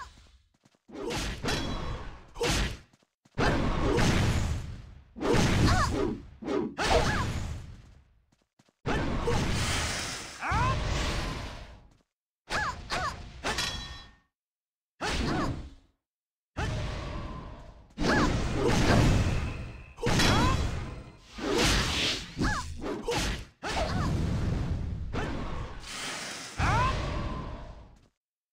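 Weapons strike with sharp hits.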